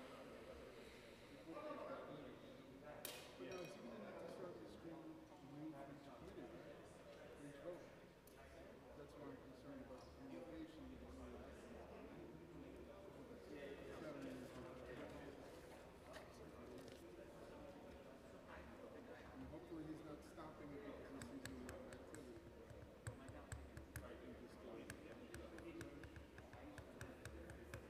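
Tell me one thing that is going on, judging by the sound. Men and women talk quietly at a distance in a large, echoing room.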